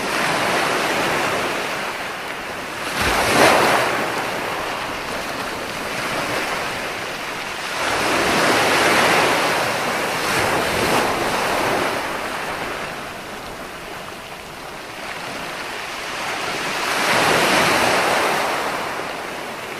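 Ocean waves break and wash up onto the shore in swelling surges.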